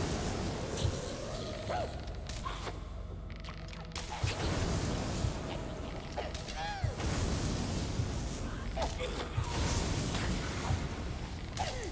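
Magic crackles and buzzes with electric bursts.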